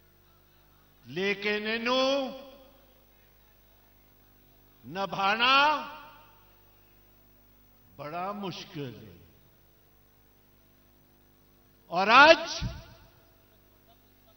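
An elderly man shouts a speech in short bursts through a loudspeaker, with pauses between phrases.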